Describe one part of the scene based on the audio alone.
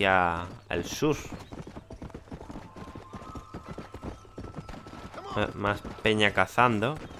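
Horse hooves gallop quickly over a dirt trail.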